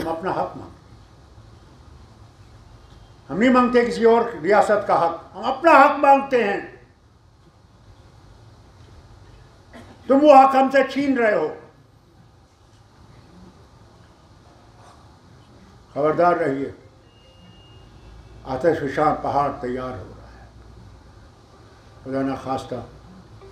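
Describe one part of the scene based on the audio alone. An elderly man speaks forcefully into a microphone over a loudspeaker, in bursts with pauses.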